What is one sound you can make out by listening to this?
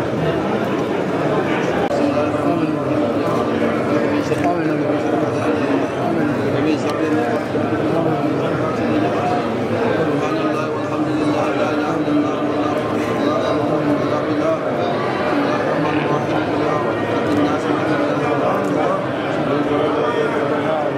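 A large crowd of men chants together in a large echoing hall.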